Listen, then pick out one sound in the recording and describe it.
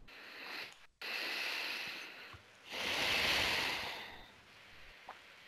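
A woman breathes out deeply and slowly.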